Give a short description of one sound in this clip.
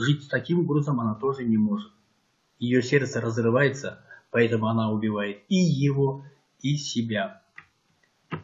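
An older man speaks calmly and close up.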